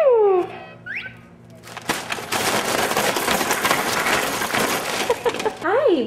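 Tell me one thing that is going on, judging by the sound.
A baby squeals.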